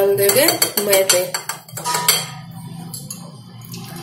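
A metal whisk clinks down onto a small plate.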